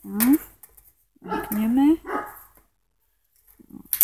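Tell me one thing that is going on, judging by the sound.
A metal wire cage rattles as a hand handles its latch.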